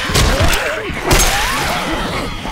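A crowbar thuds heavily into flesh.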